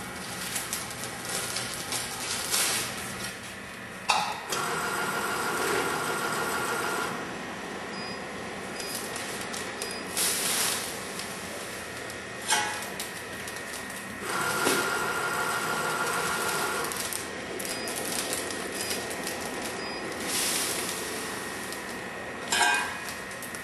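A filling machine hums steadily.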